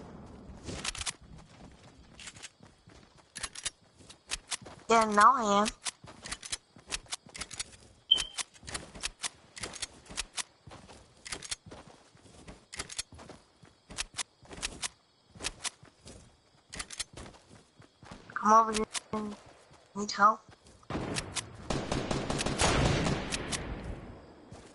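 Quick footsteps patter steadily on grass.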